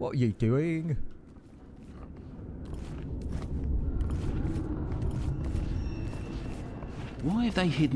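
Soft footsteps creep across a wooden floor.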